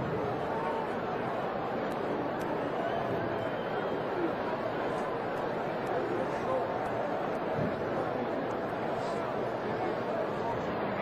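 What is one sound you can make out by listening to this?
Many voices chatter and shout close by.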